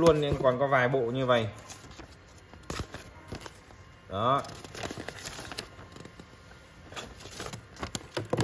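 Paper rustles and crinkles as sheets are unfolded.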